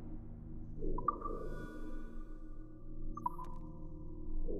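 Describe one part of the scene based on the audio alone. A menu chimes with short ringing tones.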